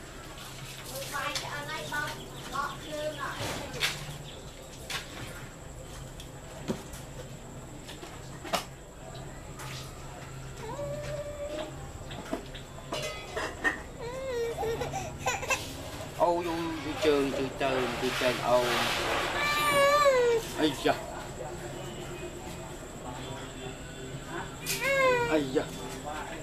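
A baby babbles and squeals close by.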